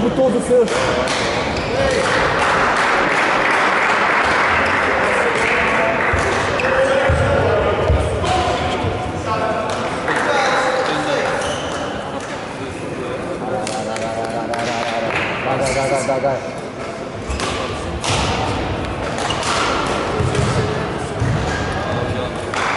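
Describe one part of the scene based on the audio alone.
A crowd of spectators murmurs and chatters in the background.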